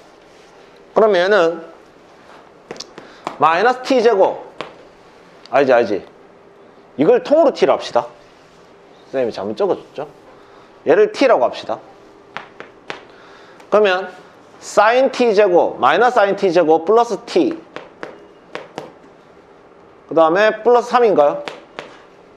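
A young man speaks calmly through a face mask, pausing often.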